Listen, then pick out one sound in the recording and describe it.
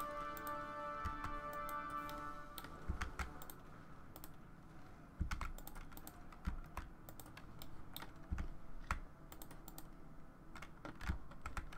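Short clicks of game interface sounds come now and then.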